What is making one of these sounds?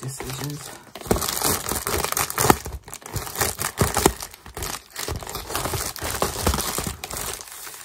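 Scissors snip through a plastic mailer.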